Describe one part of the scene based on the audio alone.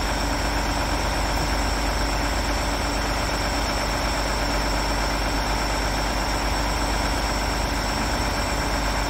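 A hydraulic crane whines as its boom slowly moves.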